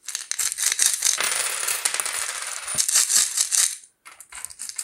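Coins clink and rattle as they pour out onto a wooden table.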